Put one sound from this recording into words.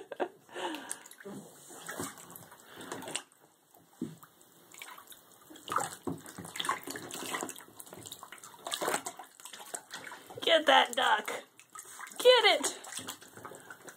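Water splashes and sloshes as a small animal swims in a tub.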